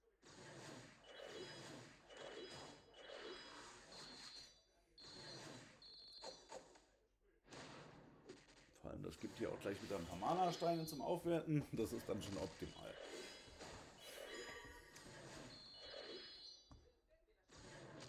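Game sound effects chime and whoosh.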